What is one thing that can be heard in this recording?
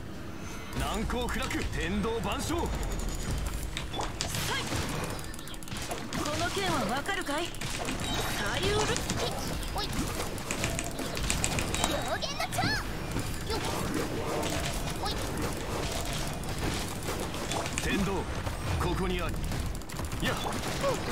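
Magic blasts and sword slashes crash and whoosh in a fast fight.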